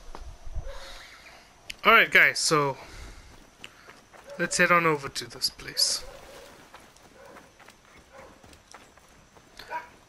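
Footsteps patter quickly over dry grass and dirt.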